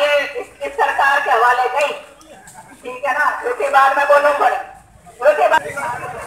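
A middle-aged woman speaks loudly into a microphone through a loudspeaker.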